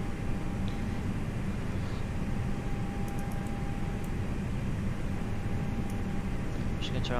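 A jet engine hums low and steadily.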